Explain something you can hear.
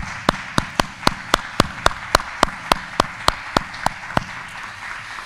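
A man claps his hands close to a microphone.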